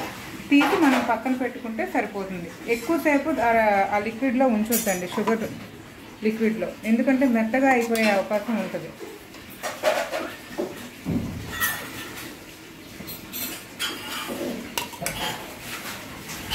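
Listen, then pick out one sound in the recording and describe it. Metal tongs clink and scrape against a metal pan.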